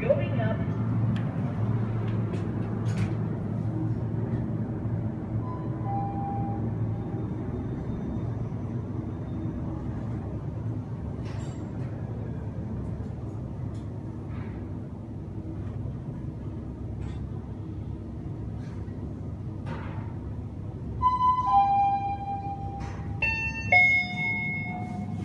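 A lift hums steadily as it moves.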